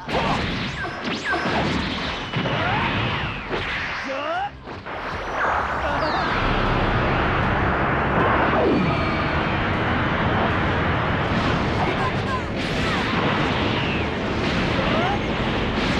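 Whooshing rushes of air sweep past in flight.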